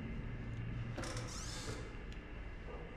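A cabinet door creaks open.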